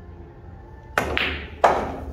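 A cue tip sharply strikes a billiard ball.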